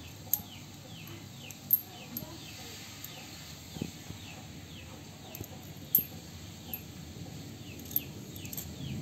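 A small magnet clicks sharply against a rock.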